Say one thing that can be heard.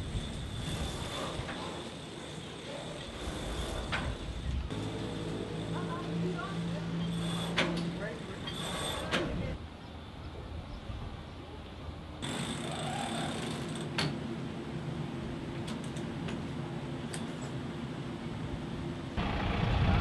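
Ropes and rigging creak and rattle in the wind.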